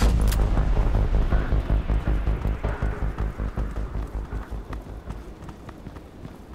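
Footsteps thud quickly on hard ground and slowly fade.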